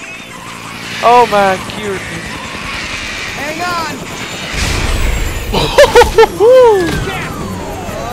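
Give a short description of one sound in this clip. A flying reptile shrieks loudly overhead.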